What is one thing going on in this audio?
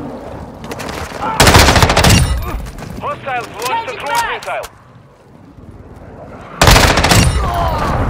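A rifle fires rapid bursts of gunshots nearby.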